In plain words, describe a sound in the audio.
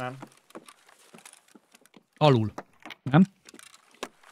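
A man speaks into a microphone, close and with animation.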